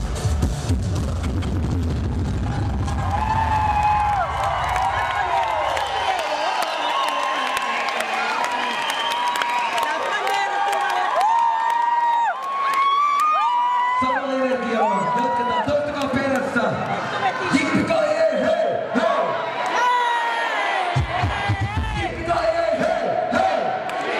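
A young man sings loudly into a microphone through loudspeakers in a large echoing hall.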